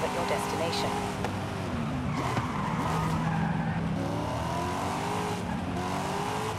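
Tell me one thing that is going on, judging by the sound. A sports car engine roars and revs up and down through gear changes.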